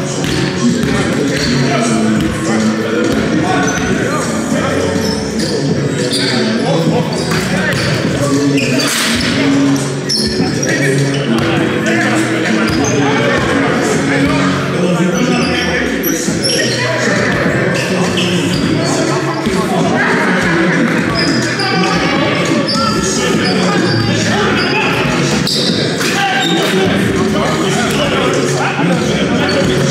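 Several men shout and call out to each other across a large echoing hall.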